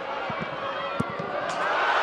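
A football is struck hard with a thud.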